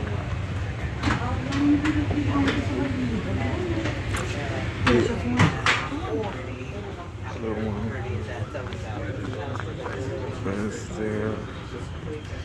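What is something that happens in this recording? Men and women talk quietly nearby.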